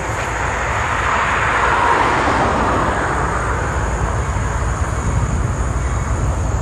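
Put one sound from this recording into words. A distant train rumbles along the tracks as it approaches.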